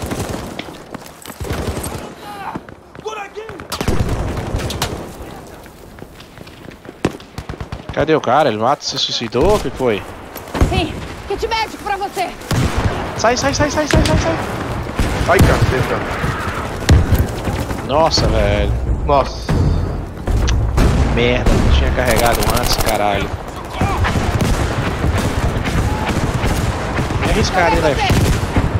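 Rifle shots crack nearby.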